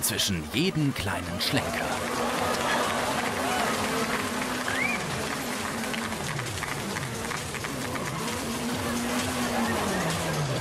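Tyres squeal on tarmac as a car drifts.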